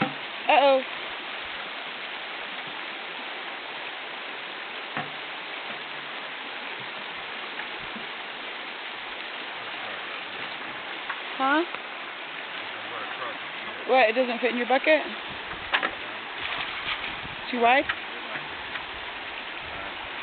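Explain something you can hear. A shallow stream flows and burbles steadily.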